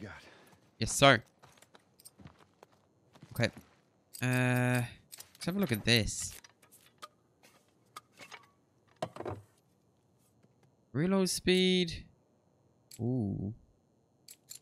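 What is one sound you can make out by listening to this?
Metal parts of a gun click and clack as they are handled.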